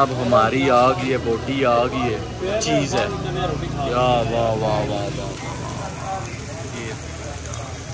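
Food sizzles on a hot iron platter.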